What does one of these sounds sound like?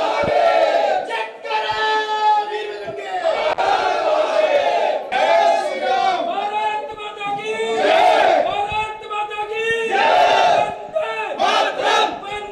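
A crowd of men chants slogans loudly in unison, close by.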